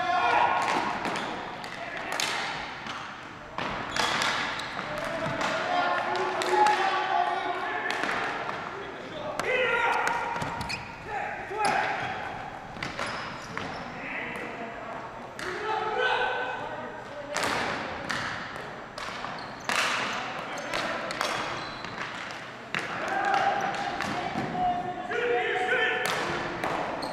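Players call out and shout to each other in a large echoing hall.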